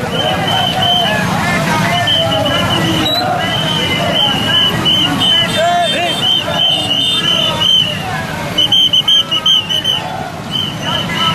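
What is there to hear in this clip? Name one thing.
A crowd of men chants and shouts outdoors.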